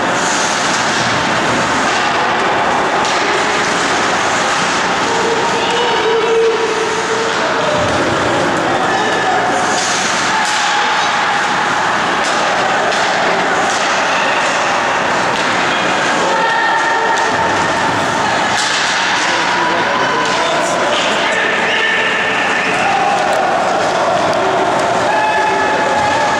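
A crowd of spectators chatters and shouts throughout.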